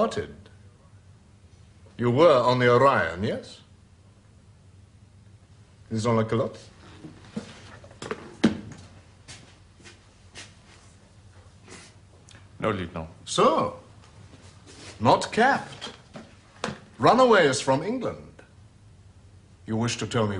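A man speaks quietly and seriously nearby, with pauses.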